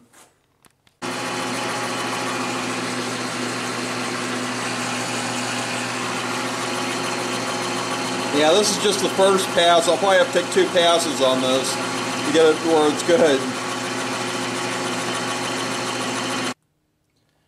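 A metal lathe motor hums steadily as the chuck spins.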